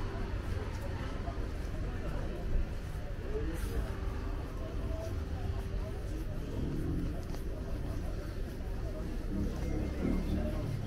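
People chatter in a busy market passage.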